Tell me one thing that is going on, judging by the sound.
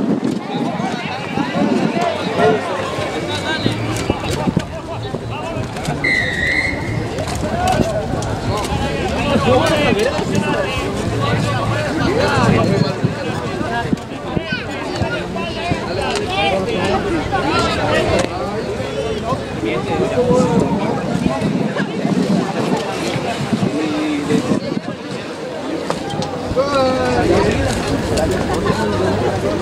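Young men shout to each other outdoors across an open field.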